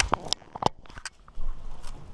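A plastic puzzle cube clicks and clacks as it is handled close by.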